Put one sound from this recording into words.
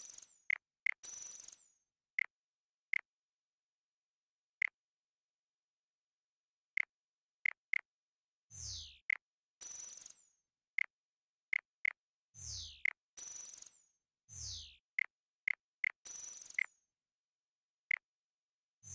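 Short electronic menu blips sound as options change.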